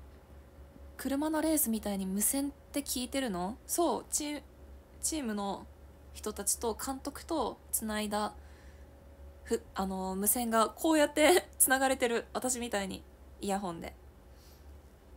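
A young woman talks close to a microphone, calmly and with animation.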